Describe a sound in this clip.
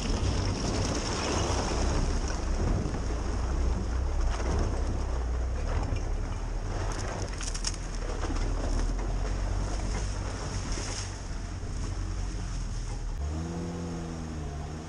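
A vehicle engine rumbles steadily at low revs.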